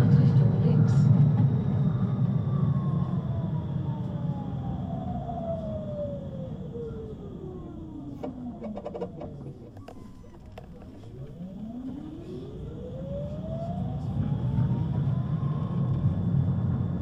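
A tram's electric motor whines, falling in pitch as it slows, then rising as it speeds up again.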